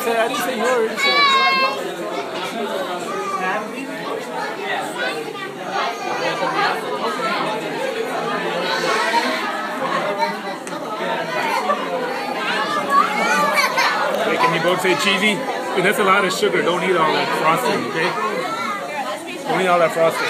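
A crowd of adults and children chatter throughout in a busy, echoing room.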